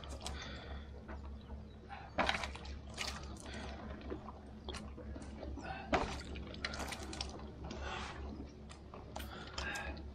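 Water trickles and splashes as a man washes his face.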